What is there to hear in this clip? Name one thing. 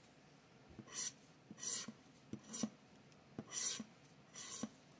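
A scraper scratches across a paper card in short strokes.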